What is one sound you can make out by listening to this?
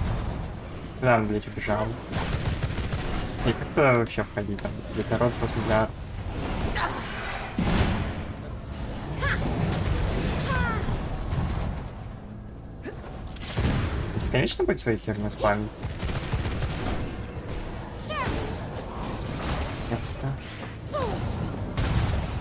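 Monsters shriek and screech in a video game.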